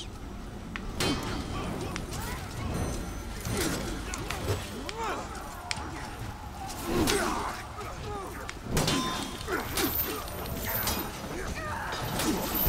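Many soldiers shout and grunt in a noisy battle.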